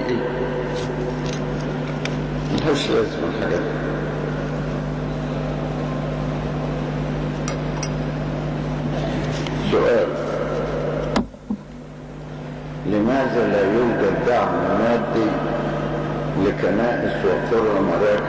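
An elderly man speaks slowly and calmly through a microphone, heard over a loudspeaker.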